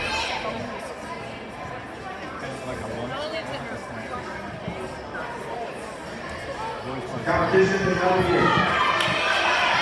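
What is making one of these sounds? A crowd of girls chatters in a large echoing gym.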